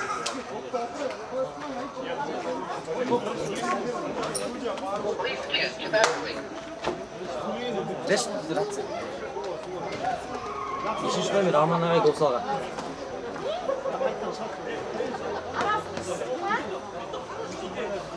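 Several men talk and argue loudly outdoors.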